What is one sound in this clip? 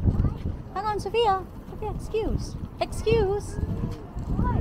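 A young girl talks close by in a high, lively voice.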